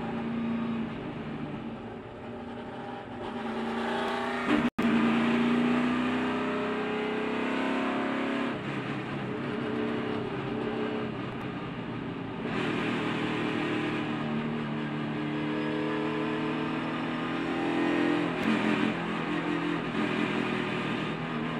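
A race car engine roars loudly inside the cabin, its pitch rising and falling as it shifts gears.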